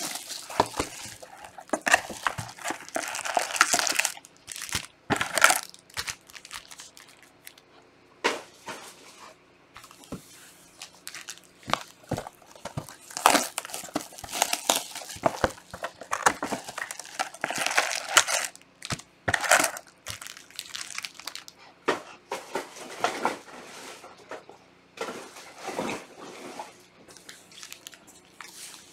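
Plastic wrapping crinkles and rustles as packs are handled.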